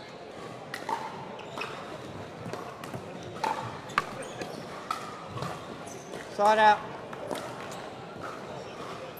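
Paddles strike a plastic ball with sharp, hollow pops in an echoing hall.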